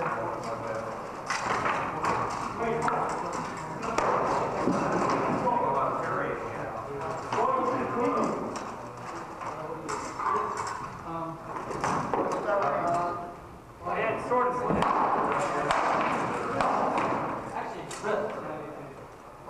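Men talk and call out across the hall.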